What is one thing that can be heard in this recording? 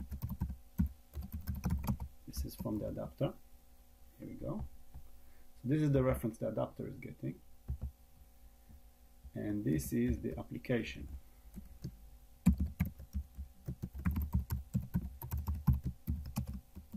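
Keys clatter on a keyboard in quick bursts.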